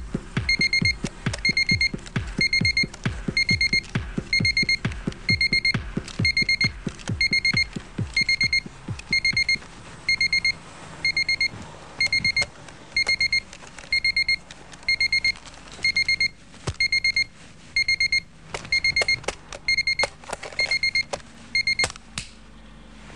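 An alarm clock beeps in quick repeated bursts.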